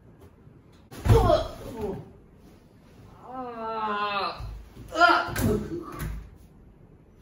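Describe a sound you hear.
A body thuds heavily onto the floor.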